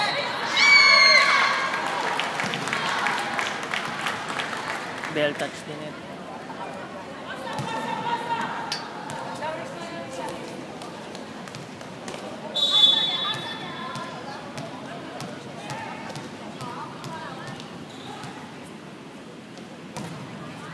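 A ball is struck with sharp slaps.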